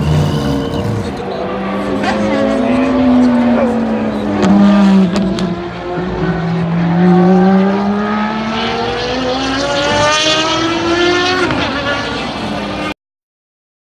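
A race car engine roars loudly, its pitch rising and falling as the car speeds past and away.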